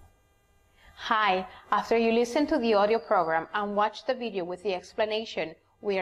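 A young woman speaks brightly in a recorded presentation.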